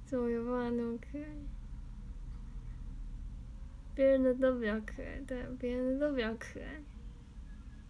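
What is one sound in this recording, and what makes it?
A young girl speaks with animation close by, in a high voice.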